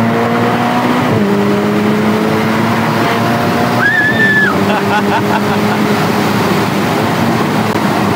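Young women laugh with excitement.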